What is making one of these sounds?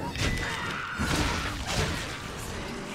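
A burst of flame whooshes and roars.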